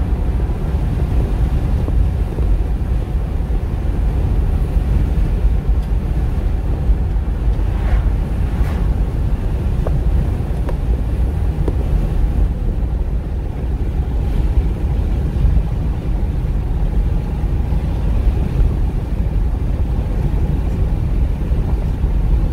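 Tyres roll on a paved road with a low rumble.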